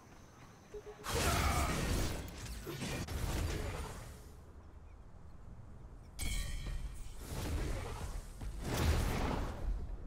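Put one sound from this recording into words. Blasts and weapon strikes boom in a fight.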